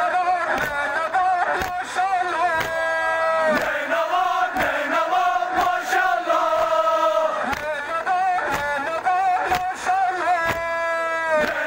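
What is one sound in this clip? A crowd of men beat their chests in a steady rhythm.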